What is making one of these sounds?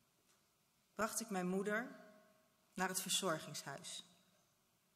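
A woman speaks calmly through a microphone in a large, echoing hall.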